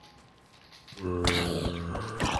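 A zombie groans loudly and close by.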